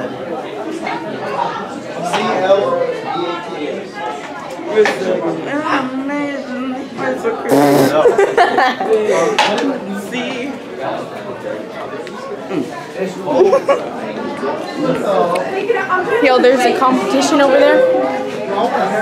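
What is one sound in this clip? Young people talk and laugh with animation close by.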